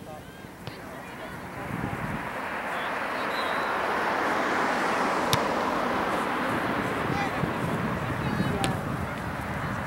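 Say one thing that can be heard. Young players call out to one another in the distance.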